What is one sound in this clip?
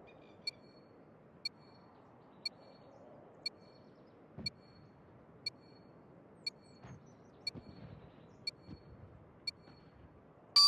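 A countdown timer beeps once each second.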